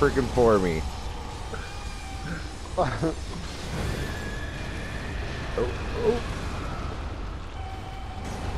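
A sword slashes and strikes with heavy impacts.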